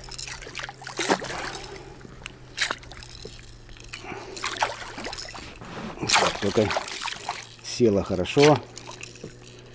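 A fish splashes and thrashes at the surface of the water.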